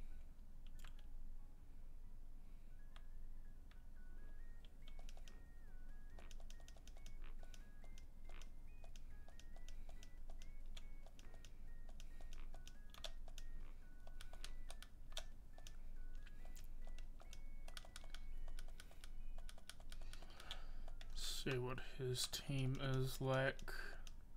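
Soft electronic game music plays with a bouncing melody.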